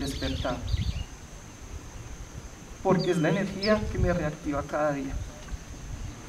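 A young man speaks emotionally into a microphone, heard through a loudspeaker outdoors.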